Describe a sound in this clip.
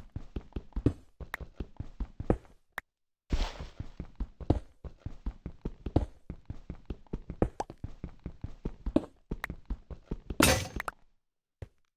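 A pickaxe chips rapidly at blocks of dirt.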